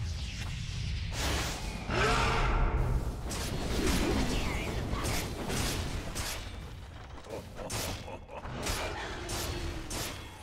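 Game spells burst and crackle in short, repeated blasts.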